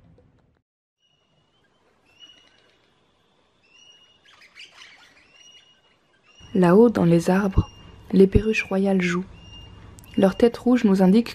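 Parrots call softly from high in the trees.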